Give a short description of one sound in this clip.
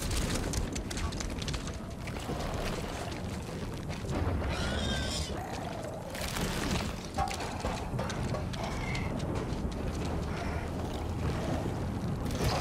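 A strong wind howls and gusts through a snowstorm.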